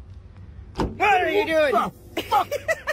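An elderly man screams in fright up close.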